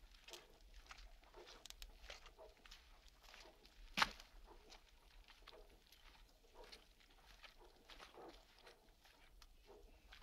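Footsteps crunch on wet shingle.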